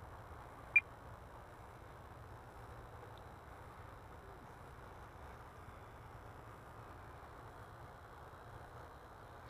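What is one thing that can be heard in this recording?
A jet aircraft rumbles steadily far overhead.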